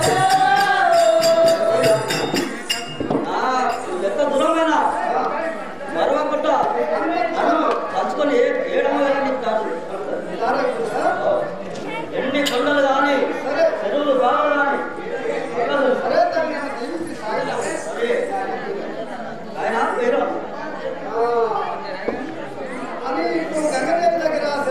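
A group of women sing together nearby.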